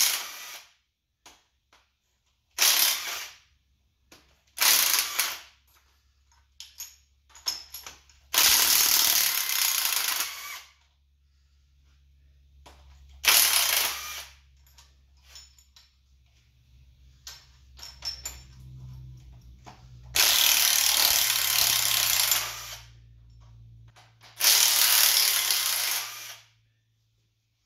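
An impact wrench buzzes in short loud bursts.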